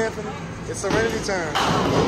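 A bowling ball rolls down a wooden lane.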